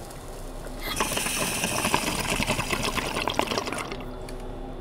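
A toilet flushes with a rushing of water.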